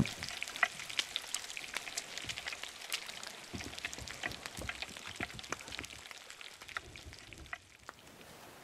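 Food sizzles and crackles in a pan on a stove.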